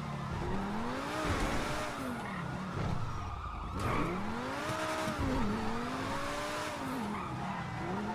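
Tyres screech on the road as a car turns corners.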